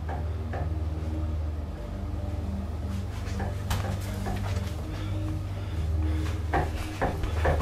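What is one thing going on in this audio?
Footsteps pad softly along a floor.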